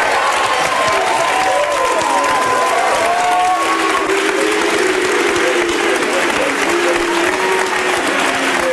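A crowd of men and women cheers and shouts.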